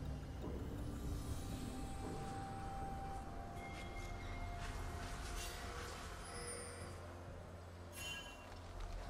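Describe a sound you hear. Magical game sound effects chime and whoosh.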